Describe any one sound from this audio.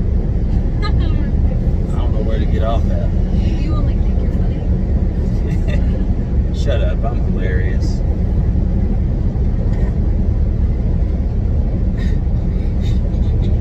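A loud, steady low rumble of a car driving fills the inside of the car.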